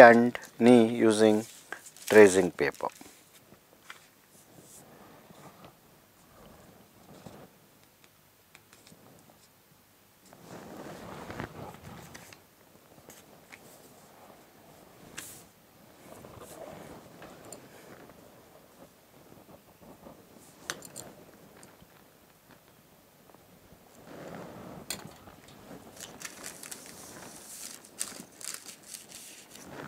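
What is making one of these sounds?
Hands slide and rustle over sheets of paper.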